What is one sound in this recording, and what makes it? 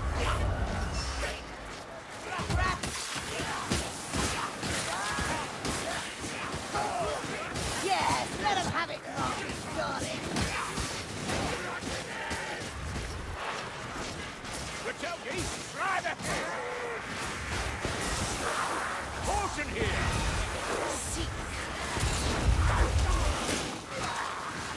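Creatures snarl and shriek as they attack.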